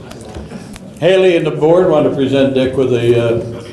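An elderly man speaks into a microphone over a loudspeaker.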